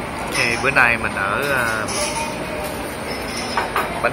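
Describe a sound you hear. Indistinct chatter from diners fills a busy room.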